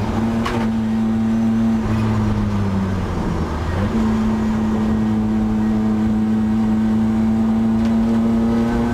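A race car engine roars loudly from inside the cabin, dipping briefly during a gear change before droning steadily again.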